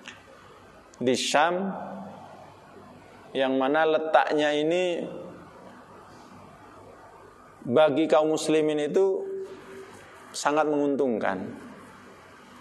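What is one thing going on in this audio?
A man speaks calmly into a microphone in short phrases, with pauses in between, in a slightly echoing room.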